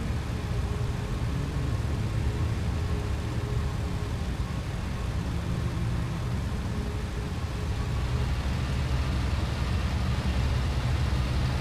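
Tyres rumble over a bumpy grass field.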